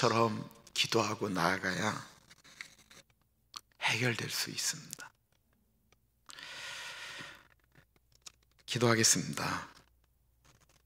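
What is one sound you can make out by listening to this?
A middle-aged man speaks with animation into a microphone in a large hall.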